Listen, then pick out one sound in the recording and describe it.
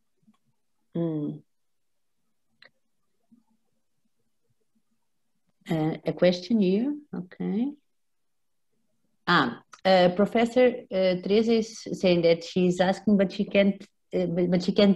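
A woman speaks calmly and close to a microphone, heard through an online call.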